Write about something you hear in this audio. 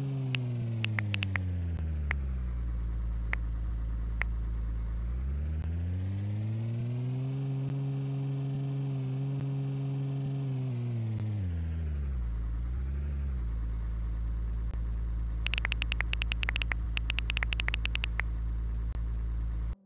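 A game car's engine hums, revs up, holds and slows down again.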